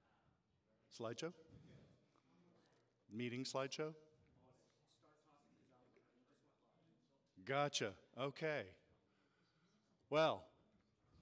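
A man speaks through a microphone in short, animated bursts with pauses between.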